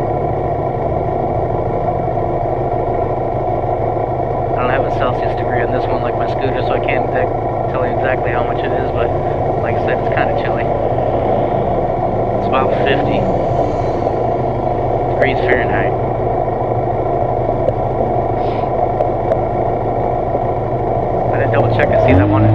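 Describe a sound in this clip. Wind buffets a helmet microphone.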